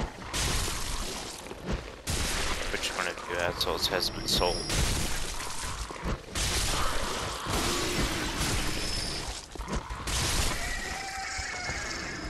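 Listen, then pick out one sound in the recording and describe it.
Footsteps walk over wet stone.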